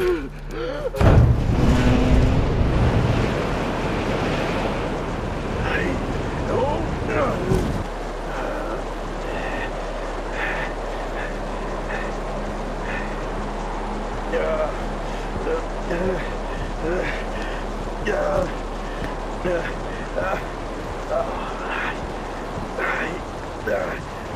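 Strong wind howls and roars outdoors.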